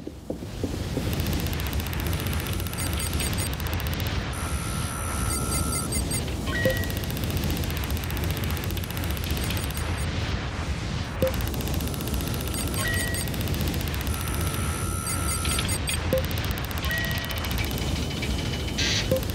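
Quick electronic blips chatter in bursts.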